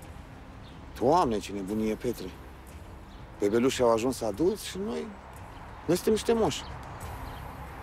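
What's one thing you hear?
Another middle-aged man answers in a low, calm voice.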